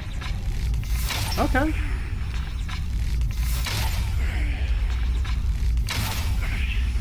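A bowstring snaps as arrows are loosed one after another.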